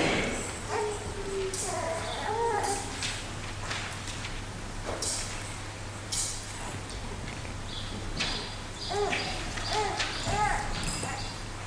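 A man murmurs a prayer quietly at a distance.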